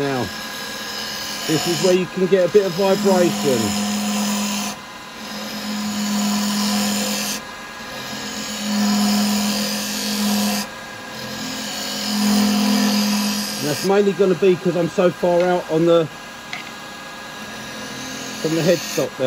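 A chisel scrapes and shaves against spinning wood.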